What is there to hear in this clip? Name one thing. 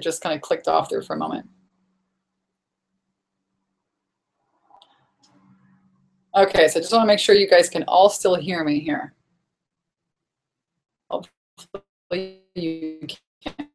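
A young woman talks with animation over an online call, with pauses.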